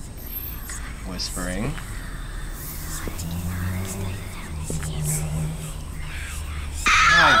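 A young man speaks quietly and closely into a microphone.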